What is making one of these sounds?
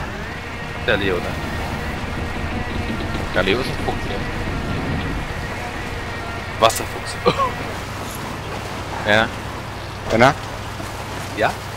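Water splashes under rolling tyres.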